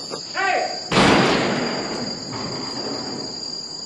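A gun fires a single loud shot that echoes away.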